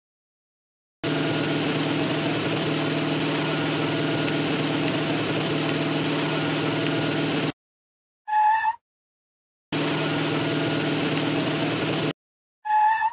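A truck engine idles with a steady hum, stopping and starting again.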